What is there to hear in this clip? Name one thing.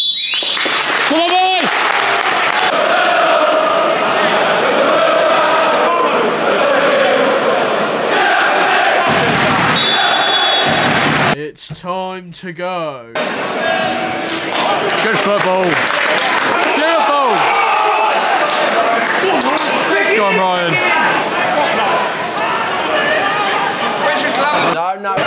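A large stadium crowd roars outdoors.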